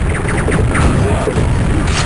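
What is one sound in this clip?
A game gun fires with a loud blast.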